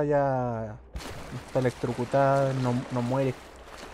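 Water pours down and splashes.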